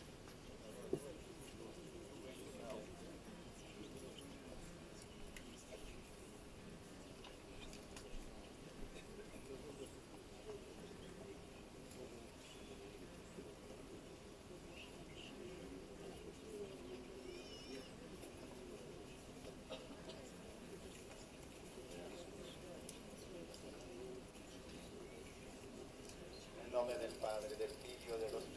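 A man speaks to a crowd through a microphone, calmly and steadily.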